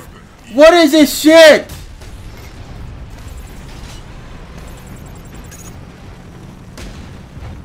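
A tank cannon fires with booming blasts.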